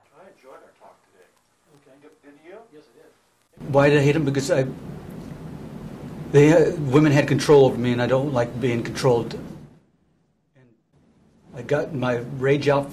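A man speaks calmly, close by.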